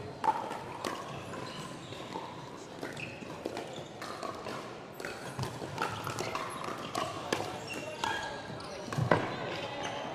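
Paddles strike a plastic ball with sharp pops in a large echoing hall.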